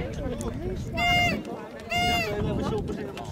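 A referee's whistle blows two short, shrill blasts.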